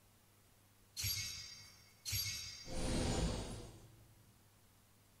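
Electronic game sound effects chime and whoosh.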